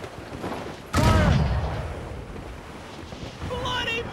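Cannons fire with a loud, deep boom that rolls away.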